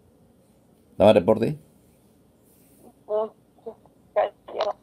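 An elderly woman speaks close to a phone microphone in short bursts.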